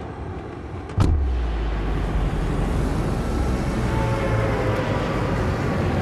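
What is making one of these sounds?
Wind roars loudly during a fast freefall.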